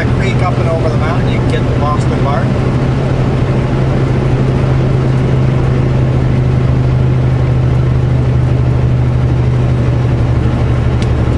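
A vehicle's engine hums steadily while driving on a highway.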